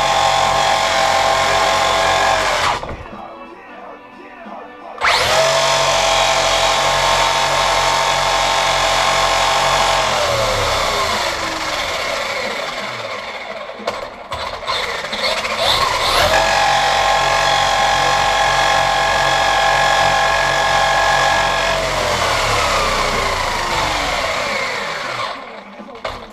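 A small electric motor whines loudly in bursts, then winds down.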